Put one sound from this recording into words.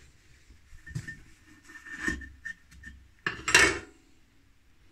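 A clay pot knocks and scrapes against a clay dish.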